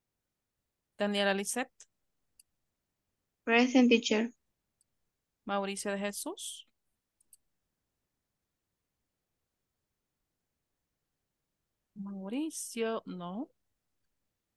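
A woman speaks calmly over an online call, in short phrases.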